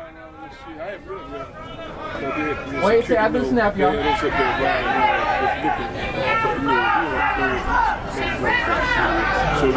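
Drums beat along with a brass band.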